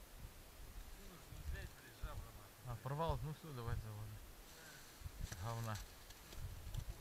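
A man speaks briefly and casually outdoors.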